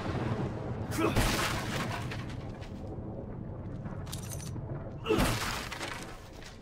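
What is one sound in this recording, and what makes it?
Wooden crates splinter and crash as they are smashed.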